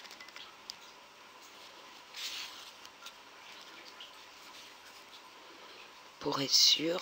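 Yarn rustles softly as it is pulled through knitted fabric.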